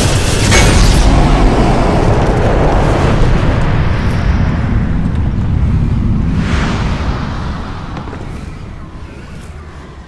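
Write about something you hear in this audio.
A fire roars loudly and then slowly fades away.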